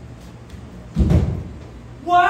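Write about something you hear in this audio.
Feet thump on a stage floor.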